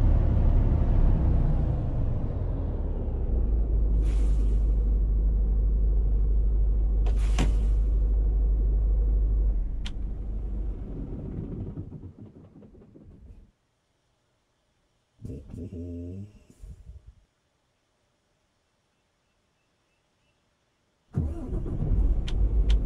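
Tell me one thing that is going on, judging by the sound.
A truck engine rumbles low and steady, then cuts out and later starts again.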